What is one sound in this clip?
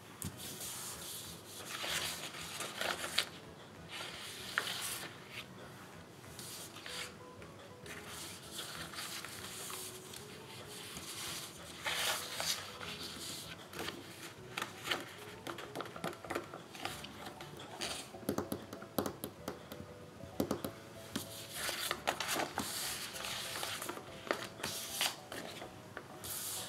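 Paper sheets rustle and slide as they are shuffled by hand.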